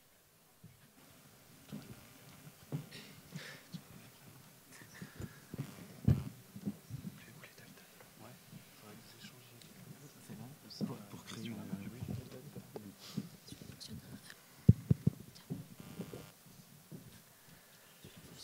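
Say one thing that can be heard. A man talks calmly into a microphone in a large hall.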